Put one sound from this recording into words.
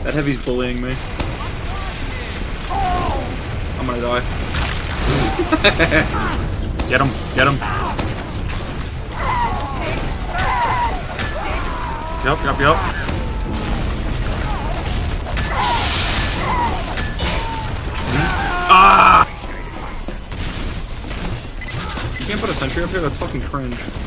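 Gunfire and explosions sound from a video game.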